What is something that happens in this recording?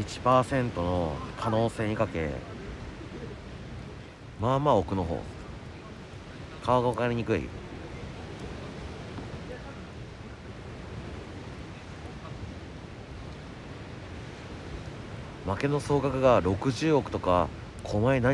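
A young man talks casually, close to the microphone.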